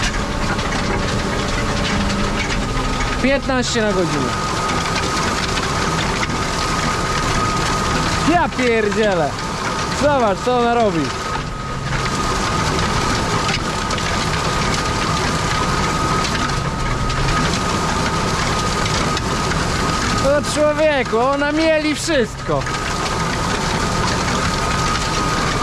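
A cultivator rattles and scrapes through the soil.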